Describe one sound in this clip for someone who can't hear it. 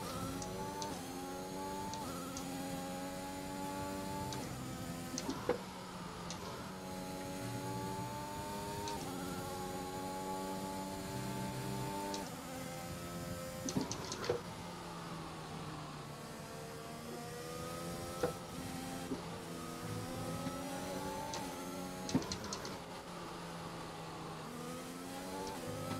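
A racing car engine whines loudly, rising in pitch and dropping sharply at each gear change.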